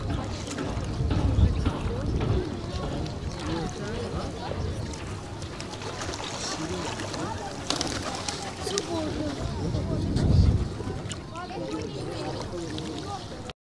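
Wind blows across an open shore.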